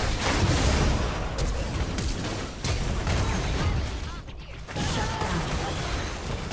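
Spell blasts and magical bursts crackle during a fast fight.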